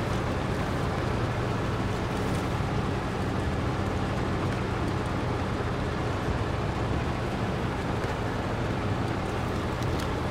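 A heavy vehicle's engine rumbles steadily, straining at low speed.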